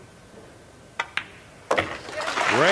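Billiard balls click together sharply.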